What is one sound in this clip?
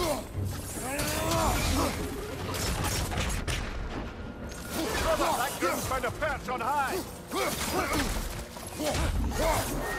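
Heavy blows thud and crack during a fight.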